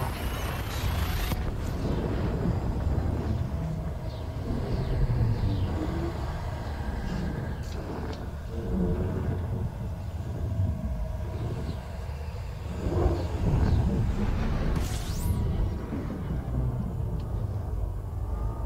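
A spaceship engine rumbles low and steadily.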